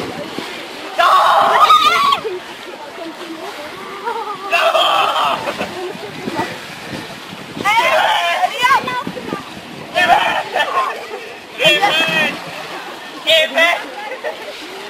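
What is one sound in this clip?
Young men shout and cheer loudly outdoors.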